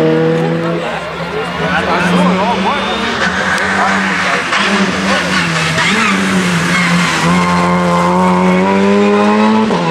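A second rally car engine revs loudly and drives by.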